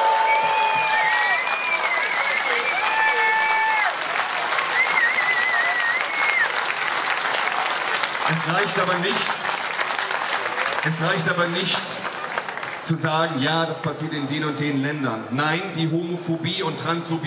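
A large crowd cheers and whistles outdoors.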